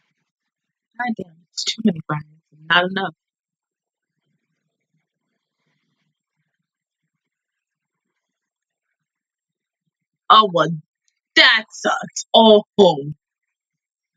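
A young woman speaks briefly and casually, close to a microphone.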